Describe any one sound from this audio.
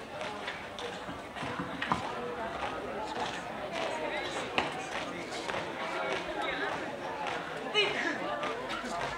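A crowd of onlookers chatters and calls out outdoors.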